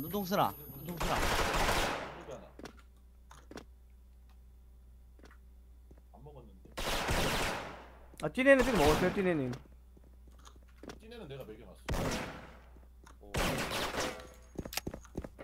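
A rifle fires loudly, with a sharp crack that rings out and fades.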